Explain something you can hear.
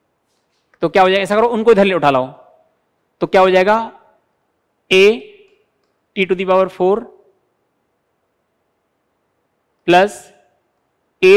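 A man explains in short bursts through a close microphone.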